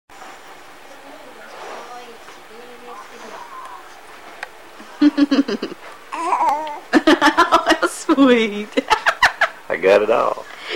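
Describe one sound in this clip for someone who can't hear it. A woman coos and talks playfully to a baby up close.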